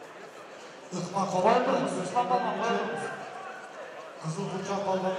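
A man shouts loudly close by.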